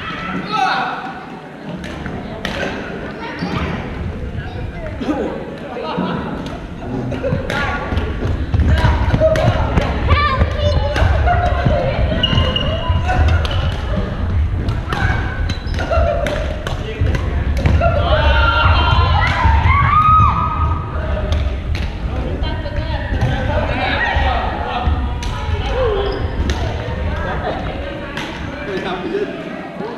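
Men and women talk and call out across a large echoing hall.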